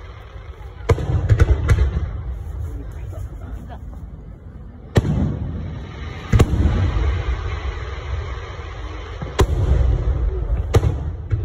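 Fireworks boom and crackle loudly overhead, outdoors.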